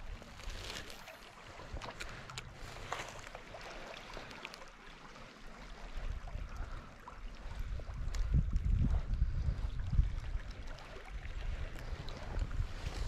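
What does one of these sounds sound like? A stream ripples and gurgles softly nearby.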